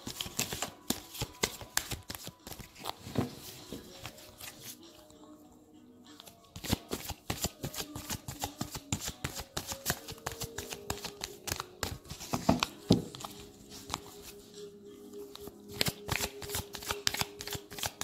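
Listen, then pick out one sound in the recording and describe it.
Playing cards rustle and tap as hands handle them close by.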